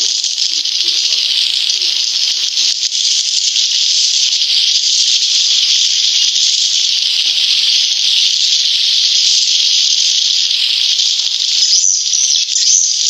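Swiftlets chirp and twitter shrilly, steadily and without a break.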